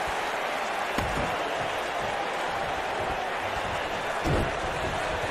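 Heavy thuds land on a wrestling ring mat.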